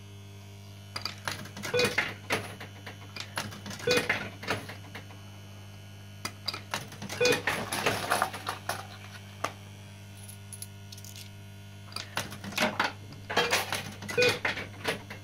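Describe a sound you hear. A fruit machine plays short bursts of clattering electronic sound.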